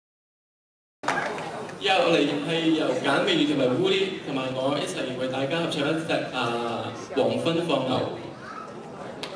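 A young man speaks into a microphone over loudspeakers in a large hall.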